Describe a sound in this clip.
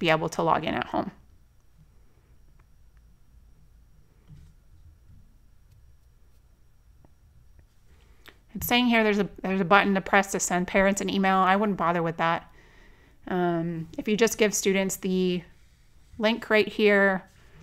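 A woman speaks calmly into a close microphone.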